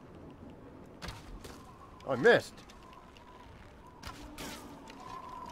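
An arrow whooshes as it is loosed.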